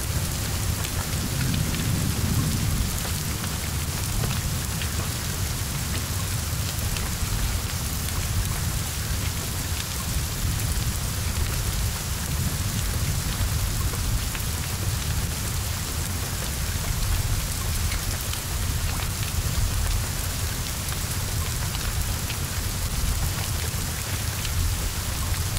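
Flames roar and crackle on a burning car.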